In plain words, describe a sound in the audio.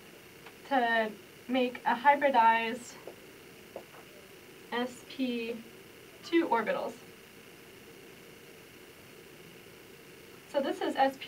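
A young woman explains calmly, close to a microphone.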